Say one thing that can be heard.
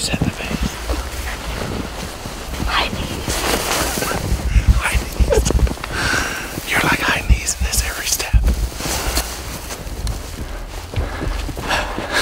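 Boots crunch through snow.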